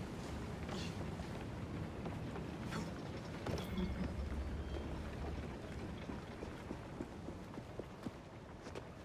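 Footsteps patter quickly over hard ground.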